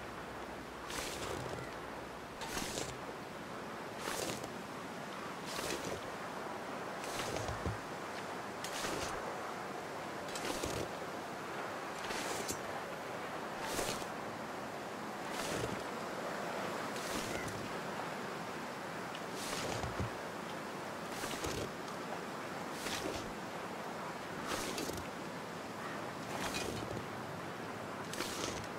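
Footsteps crunch slowly and evenly in deep snow.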